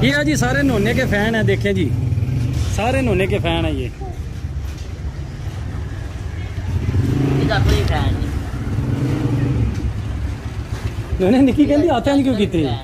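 A motorbike engine idles close by.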